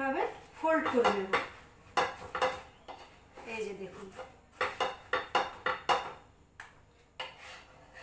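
A spatula scrapes and taps against a pan.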